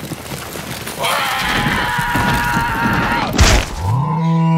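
A cartoon creature screams in a high, squeaky voice.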